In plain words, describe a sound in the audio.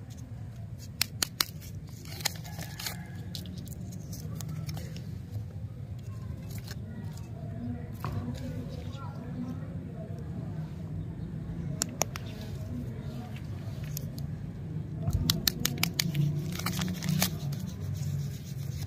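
A plastic candy wrapper crinkles as it is torn open.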